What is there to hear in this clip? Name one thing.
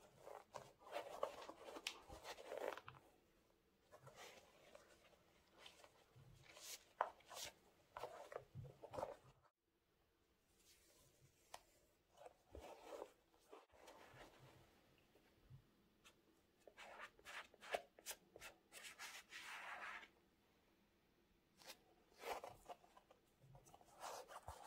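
Gloved hands rustle against a sneaker up close.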